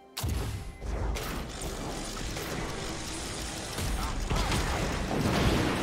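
Magic blasts and impacts crackle and whoosh in a fast battle.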